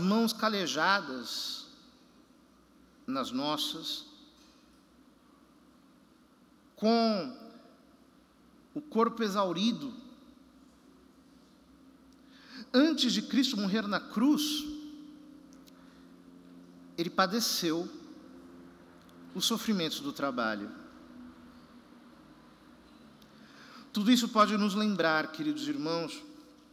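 A man speaks calmly and slowly into a microphone, with pauses, in a large echoing hall.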